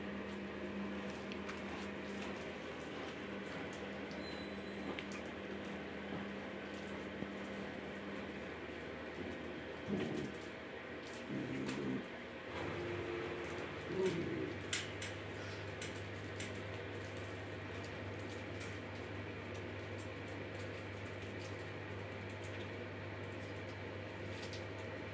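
Puppies tug and chew on a plush toy.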